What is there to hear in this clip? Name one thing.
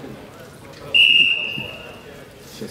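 A referee's whistle blows once, sharply.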